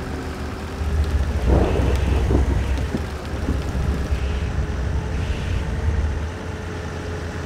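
A bus engine revs louder as the bus speeds up.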